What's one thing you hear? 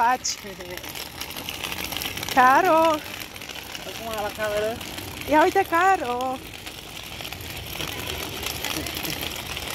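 Small plastic wheels roll over pavement.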